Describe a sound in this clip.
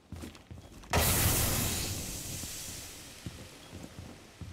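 A loud explosion booms nearby and its rumble slowly fades.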